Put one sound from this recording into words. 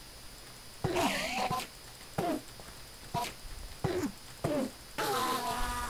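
A sword strikes a creature with dull thuds.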